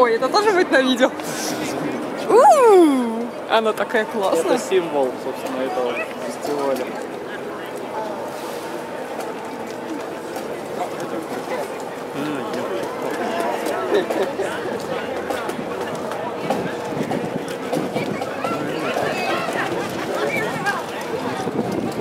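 A crowd of people talks and calls out outdoors on a street.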